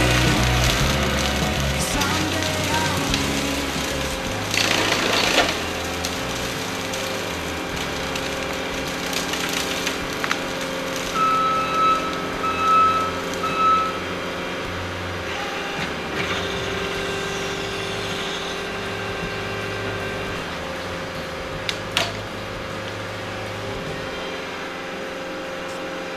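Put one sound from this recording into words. A heavy diesel engine runs steadily nearby.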